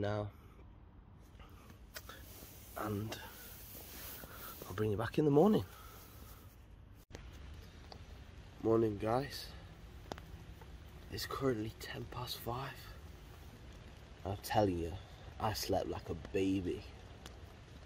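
A young man speaks close by in a low, tired voice.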